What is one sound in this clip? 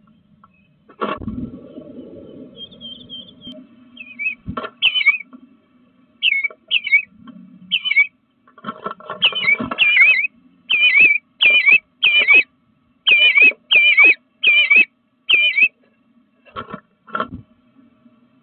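A bird's claws scrape and thump on wood.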